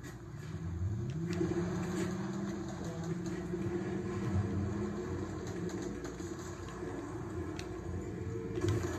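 A game car engine hums through a television speaker.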